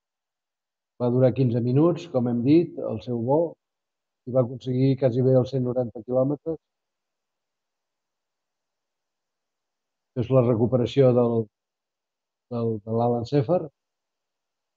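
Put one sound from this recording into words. An elderly man talks calmly into a microphone, in short phrases with pauses.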